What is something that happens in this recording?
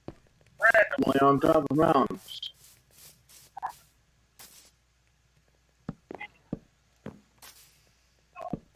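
Footsteps thud softly on grass and wooden planks.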